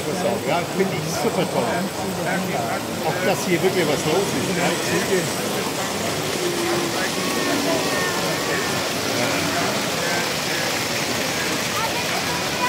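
A crowd of adults chatters in an indoor hall.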